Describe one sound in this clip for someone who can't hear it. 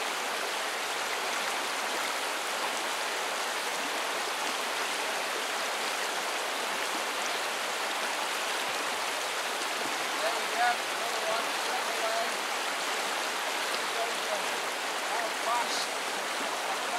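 A shallow river rushes and babbles over stones outdoors.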